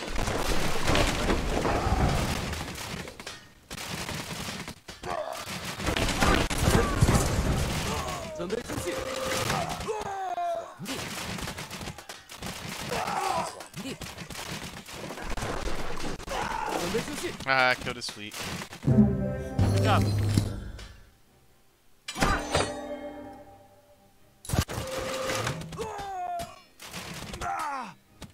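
Swords clash and hit in a battle.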